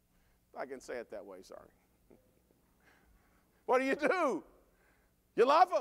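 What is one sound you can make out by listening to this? A middle-aged man preaches with animation into a microphone in a large echoing hall.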